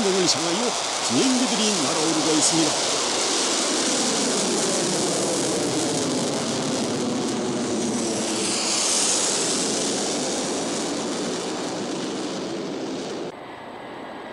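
Jet engines roar loudly as planes fly low overhead.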